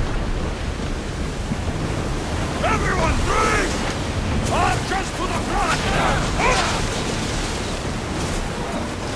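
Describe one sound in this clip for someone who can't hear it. Waves rush and splash against a ship's hull.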